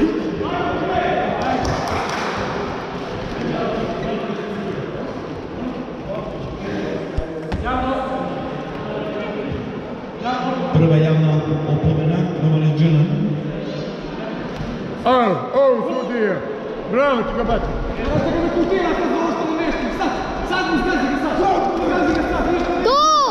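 A man shouts encouragement from close by.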